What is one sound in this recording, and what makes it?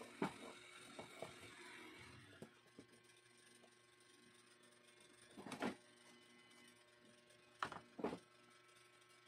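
A wooden board knocks and clatters against a workbench.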